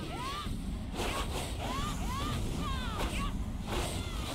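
Sharp hits land in a fight.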